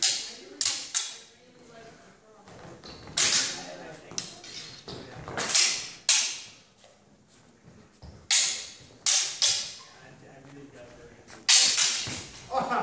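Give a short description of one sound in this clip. Steel swords clash with sharp ringing clacks in an echoing hall.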